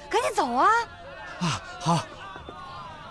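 A young man exclaims in surprise.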